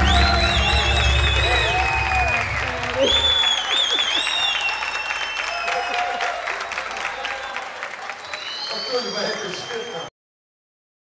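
An audience claps and cheers loudly in a lively room.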